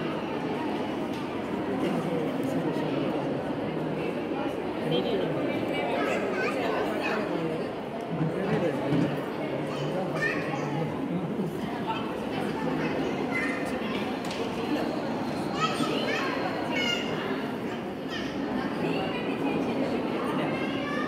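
A crowd of women chatters nearby in an echoing hall.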